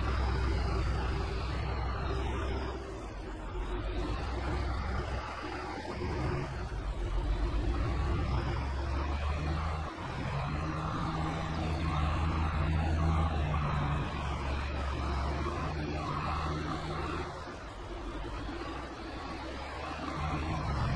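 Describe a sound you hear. A tractor engine rumbles steadily as it drives along.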